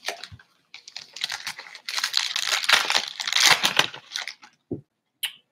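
A plastic wrapper crinkles as hands tear it open.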